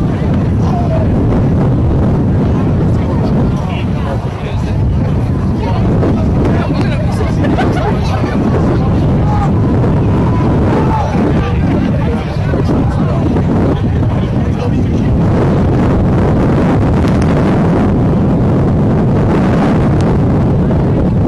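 A crowd of young men chatters and shouts outdoors.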